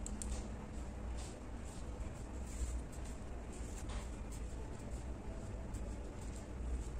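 Yarn rustles softly as it is pulled through crochet stitches.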